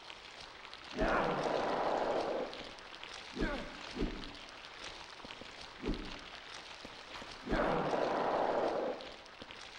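A weapon strikes a body with heavy thuds.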